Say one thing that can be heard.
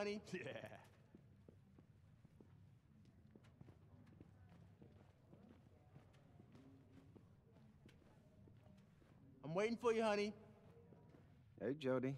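Light footsteps tap on a hard floor.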